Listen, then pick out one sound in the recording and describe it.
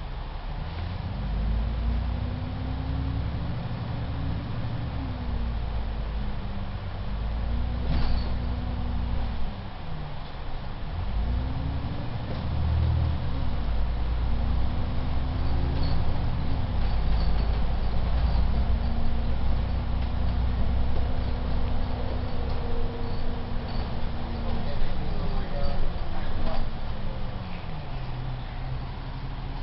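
Loose bus fittings rattle and clatter now and then.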